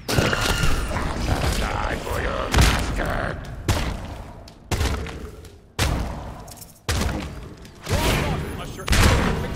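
Heavy blasts and impacts boom again and again in a fast-paced battle.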